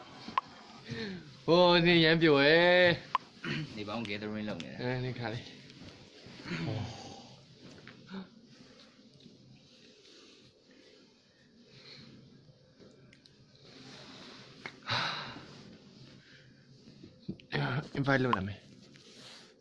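A young man talks casually close to a phone microphone.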